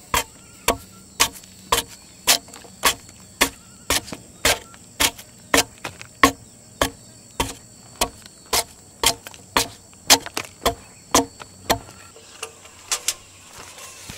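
A chisel chops into wood with quick, regular knocks.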